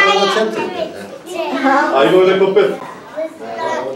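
Young children chatter and call out in a room.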